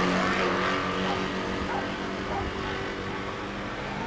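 Car tyres skid and splash through water on the track.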